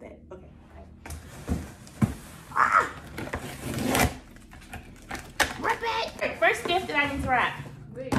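Cardboard and paper rustle as a box is opened.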